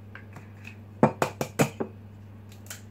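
An egg cracks against the rim of a bowl.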